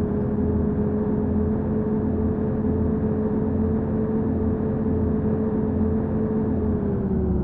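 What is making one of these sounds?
A diesel bus engine drones steadily at cruising speed, dropping slightly in pitch near the end.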